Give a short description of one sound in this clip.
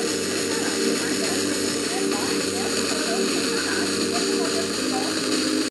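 A radio broadcast plays steadily through a small loudspeaker.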